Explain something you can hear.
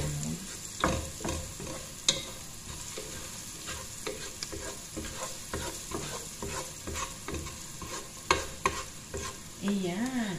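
A wooden spoon scrapes and knocks against a pot.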